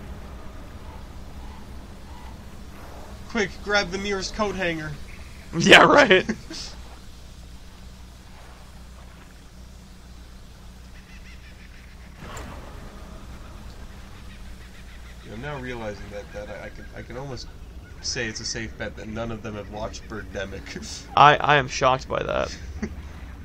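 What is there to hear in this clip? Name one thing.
Water splashes softly against a boat's hull.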